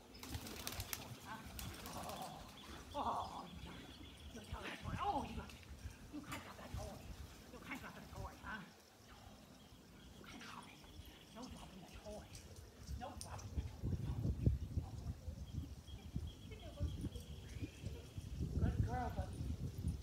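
A man talks to a dog in an upbeat, encouraging voice nearby, outdoors.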